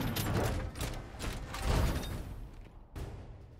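Heavy boots tramp on rough ground.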